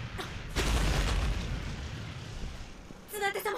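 A dust cloud rumbles and whooshes.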